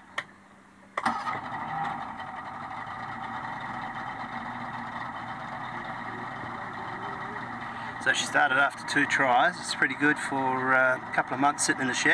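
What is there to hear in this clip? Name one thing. An outboard motor idles steadily close by.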